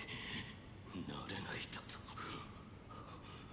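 A young man speaks quietly in a strained, troubled voice.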